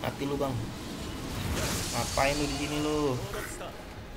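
A blade slices with a wet thud.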